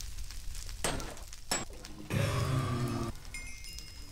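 Blocks crack and break with short crunching knocks.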